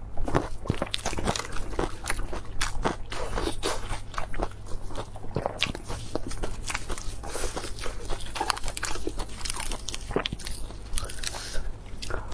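Lettuce leaves rustle and crinkle in a young woman's hands.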